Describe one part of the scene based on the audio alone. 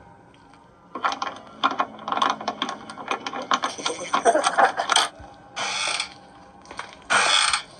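A wooden door creaks as it is pulled open.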